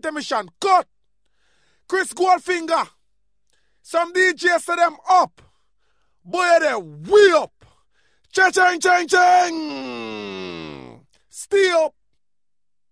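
A man speaks with animation into a microphone, in short bursts with pauses.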